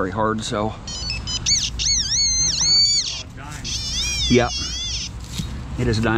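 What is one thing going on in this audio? A handheld pinpointer chirps in warbling tones.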